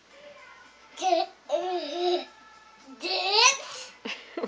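A young girl sings and squeals playfully close by.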